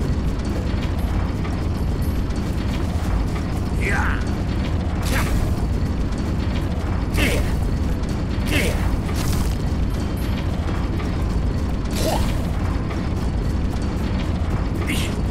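Footsteps patter on stone as a small creature walks.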